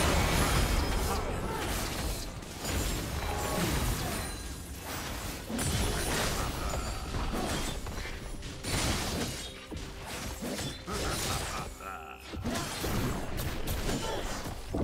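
Game spell effects crackle and boom in a fight.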